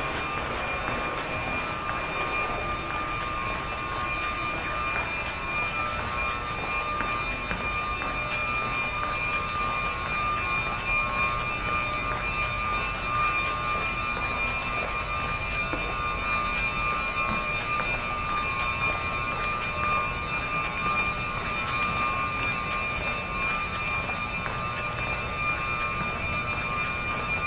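A stopped train hums and whines steadily in an echoing underground hall.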